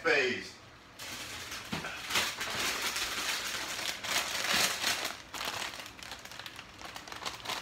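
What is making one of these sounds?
A plastic bag rustles and crinkles as cheese is shaken out of it.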